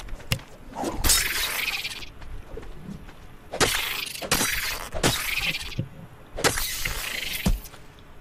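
A wooden club strikes a large insect with heavy thuds.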